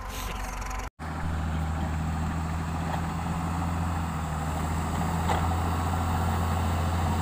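A diesel motor grader rumbles low and steady as it drives close by.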